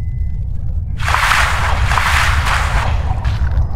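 Water splashes loudly as a fish breaks the surface.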